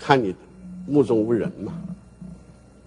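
An elderly man speaks slowly and forcefully into a microphone.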